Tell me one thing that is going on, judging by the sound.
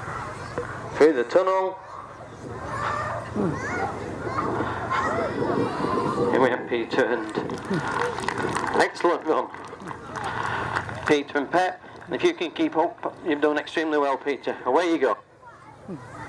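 A man calls out loudly to a dog.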